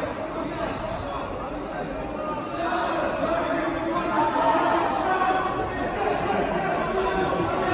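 Men shout and call out in a large echoing hall.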